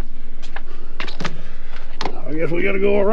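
A door latch clicks as a door is pushed open.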